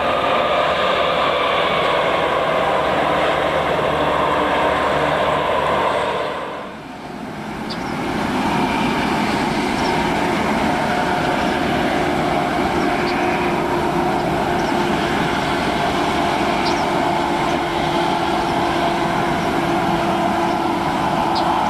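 Diesel locomotive engines rumble steadily as a train passes.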